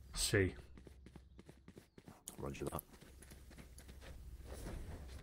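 A man speaks briefly into a close microphone in short bursts.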